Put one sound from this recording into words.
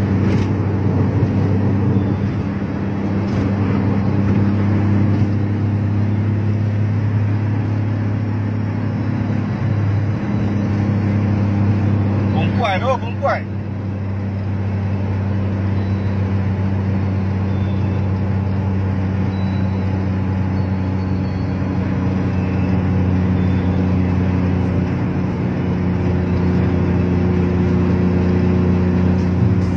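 Wind and road noise rush past a moving car.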